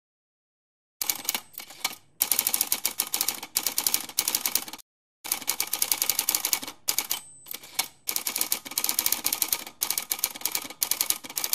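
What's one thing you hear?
Small grains scatter and scrape across paper under rubbing hands.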